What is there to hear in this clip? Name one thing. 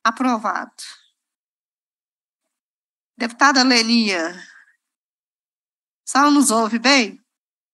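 A woman speaks calmly into a microphone, in short phrases with pauses.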